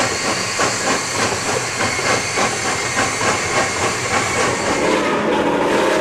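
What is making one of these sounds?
A steam locomotive chugs in quick, even puffs.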